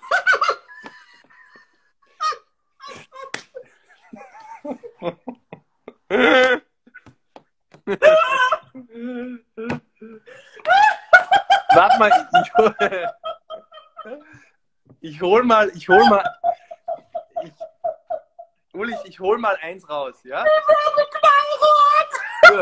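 A young man laughs and talks with animation over an online call.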